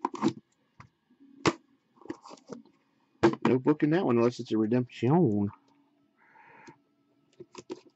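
Cardboard boxes scrape and tap as hands handle them.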